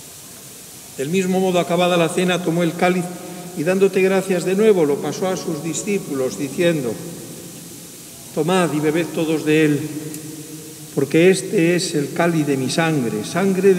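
An elderly man chants a prayer through a microphone.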